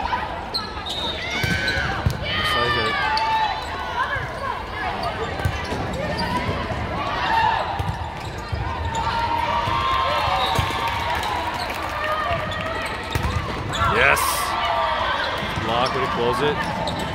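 Shoes squeak sharply on a hard court floor.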